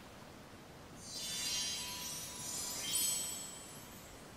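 Magical chimes sparkle and shimmer.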